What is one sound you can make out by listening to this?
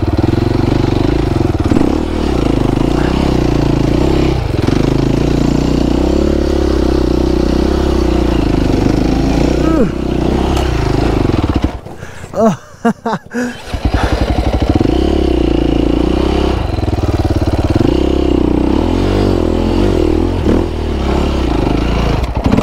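A dirt bike engine revs loudly close by, rising and falling, with a brief drop.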